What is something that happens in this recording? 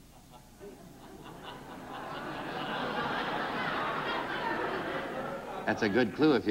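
A studio audience laughs.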